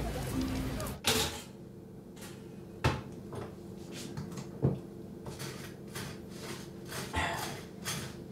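A man handles objects with soft knocks and clatters.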